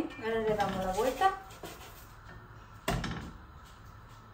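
A spatula knocks against a pan as bread is flipped.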